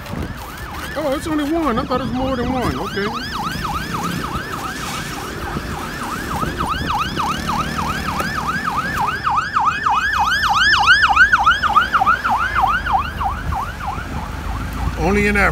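An ambulance siren yelps rapidly nearby, then stops.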